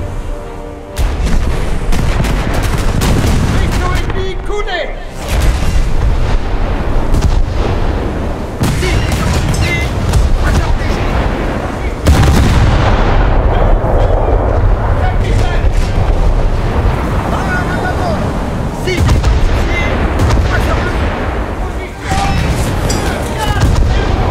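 Heavy guns fire with deep, booming blasts.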